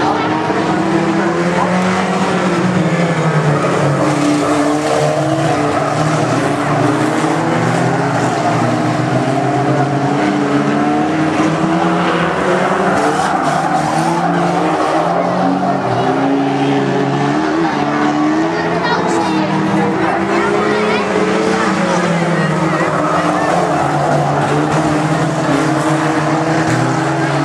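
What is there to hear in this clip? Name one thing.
Car engines roar and rev as cars race around a track.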